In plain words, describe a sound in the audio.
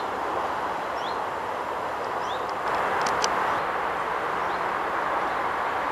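A car drives past on a road.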